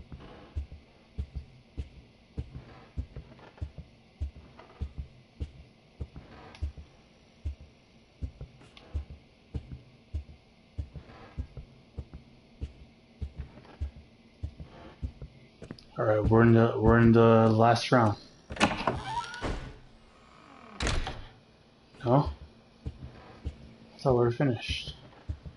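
Footsteps tap steadily on a wooden floor in an echoing hallway.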